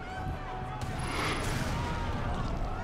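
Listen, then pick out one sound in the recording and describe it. A blast roars and rumbles.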